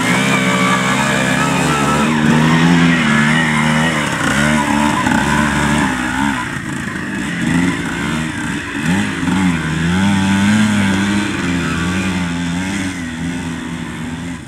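Knobby tyres churn and spray through mud.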